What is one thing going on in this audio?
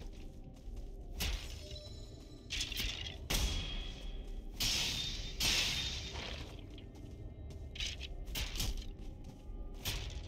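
Weapon blows thud and clang in a fight.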